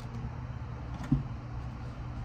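A card is set down on a hard tabletop with a soft tap.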